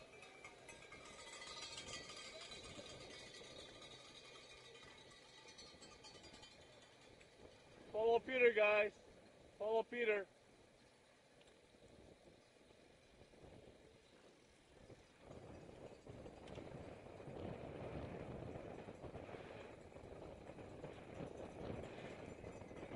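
Wind rushes past while riding a bicycle.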